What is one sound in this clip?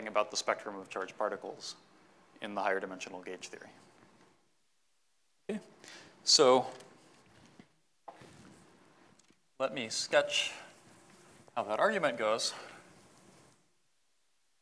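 A man lectures through a microphone in a large echoing hall.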